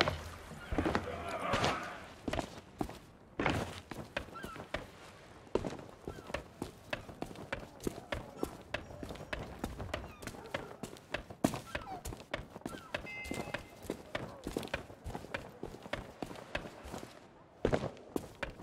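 Footsteps walk briskly over stone paving.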